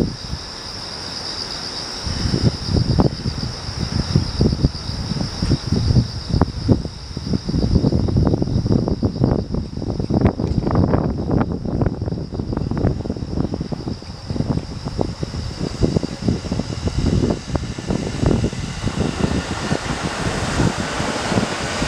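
A train approaches and rumbles past close by, wheels clattering over rail joints.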